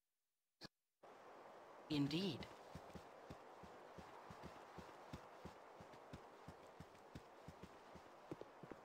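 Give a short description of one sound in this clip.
Footsteps tread steadily and softly on the ground.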